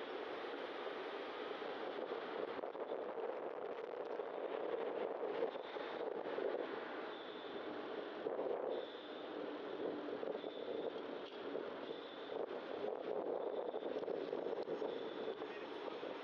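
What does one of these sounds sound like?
Steady road noise rumbles from a moving vehicle.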